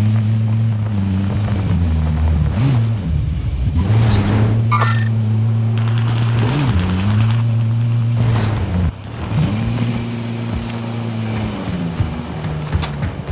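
A vehicle engine rumbles steadily and revs as it drives on a rough track.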